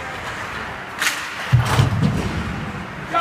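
A player crashes into the boards with a loud thud.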